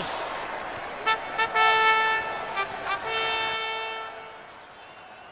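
A trumpet blows a loud fanfare.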